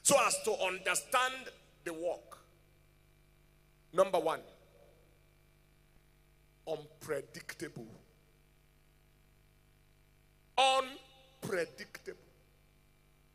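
A man preaches with emphasis through a microphone in a large echoing hall, pausing between phrases.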